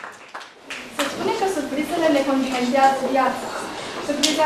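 A young woman speaks calmly.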